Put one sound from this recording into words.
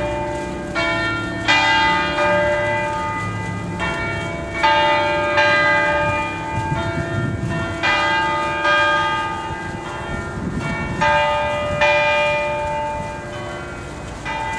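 Church bells swing and ring loudly, with strokes overlapping and ringing on.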